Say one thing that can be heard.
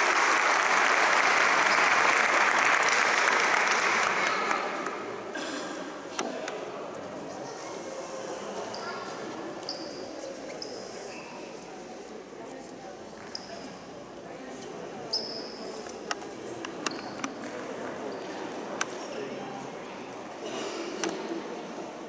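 Small children's shoes tap and shuffle on a hard floor.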